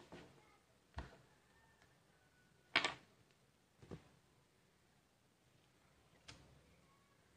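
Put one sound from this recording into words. Small objects click and tap as they are handled.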